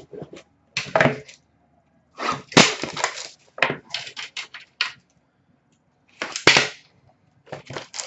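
Card packs rustle and crinkle in hands.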